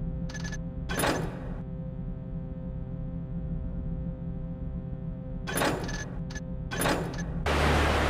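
Menu buttons click sharply a few times.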